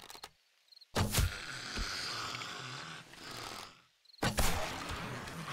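A bow twangs as an arrow is shot.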